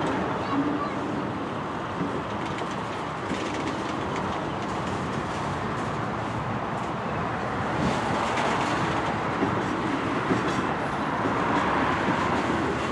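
A freight train rumbles slowly past in the distance.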